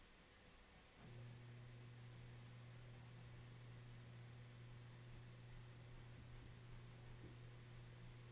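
A low synthesizer tone hums steadily.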